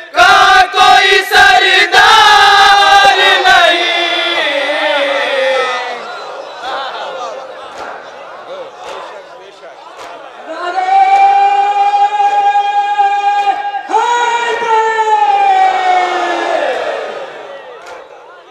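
A man chants a mournful lament loudly through a loudspeaker, heard outdoors.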